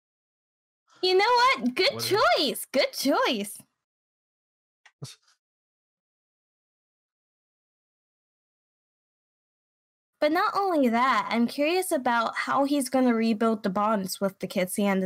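A young woman talks with animation into a microphone.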